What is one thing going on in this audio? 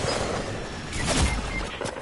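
A pickaxe swings and whooshes through the air.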